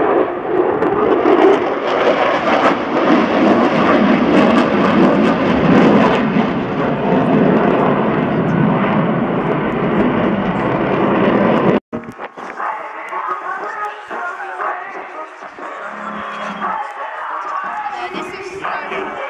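A jet engine roars loudly overhead and slowly fades.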